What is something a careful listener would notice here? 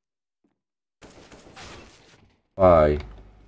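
A knife slashes through the air.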